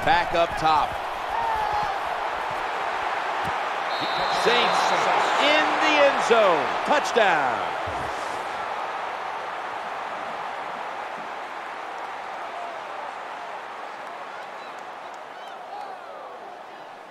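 A large stadium crowd roars and cheers, slowly fading.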